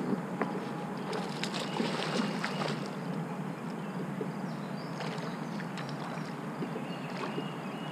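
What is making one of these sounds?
A fishing reel clicks as line is reeled in.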